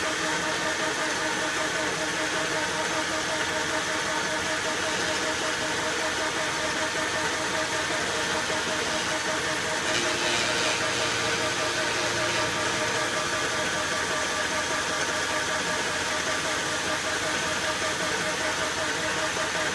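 A lathe spins with a steady mechanical whir.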